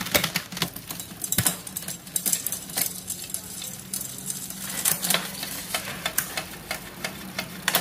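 A bicycle freewheel ticks rapidly as the wheel spins.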